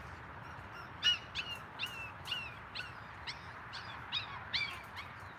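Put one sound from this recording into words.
Puppies yelp and whine in short, high bursts close by.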